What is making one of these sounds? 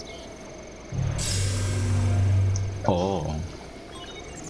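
A deep magical hum rises as a stone pedestal lights up.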